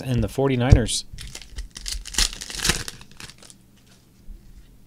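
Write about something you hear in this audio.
Trading cards rustle and scrape as hands handle them.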